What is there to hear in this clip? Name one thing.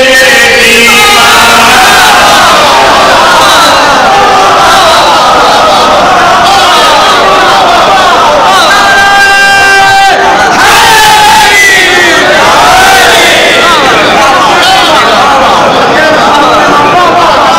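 A crowd of men chant and shout together in response.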